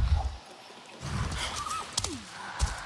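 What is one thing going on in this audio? An energy blast bursts with a loud whoosh.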